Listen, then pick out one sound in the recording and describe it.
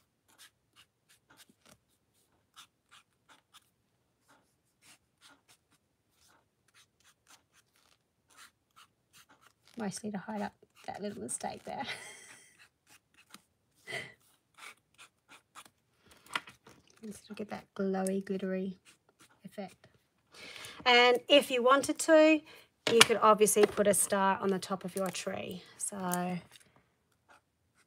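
A marker pen squeaks and scratches across paper in short strokes.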